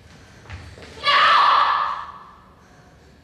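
A girl cries out loudly as she runs up.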